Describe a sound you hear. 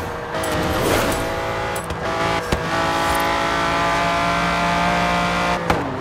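A sports car engine roars at high speed, shifting gears.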